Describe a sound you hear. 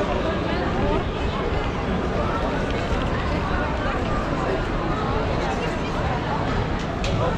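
A crowd of people chatters on a busy street outdoors.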